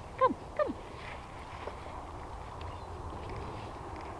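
Footsteps crunch on dry leaves and gravel outdoors.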